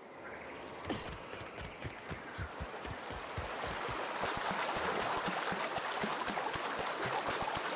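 Footsteps crunch steadily over rough, stony ground.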